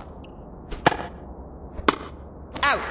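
A tennis ball is struck sharply with a racket, then bounces.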